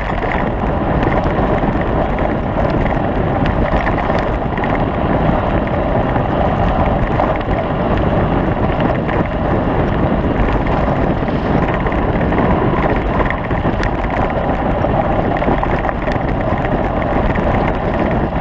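Wind rushes loudly past the moving rider.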